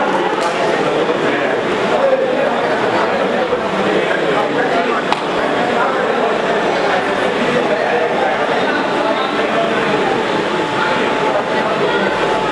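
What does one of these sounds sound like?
Many men and women chatter at once in an echoing hall.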